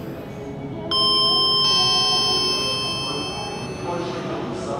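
An elevator chime rings out.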